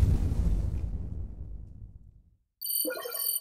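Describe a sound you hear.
A deep game victory boom rumbles and slowly fades.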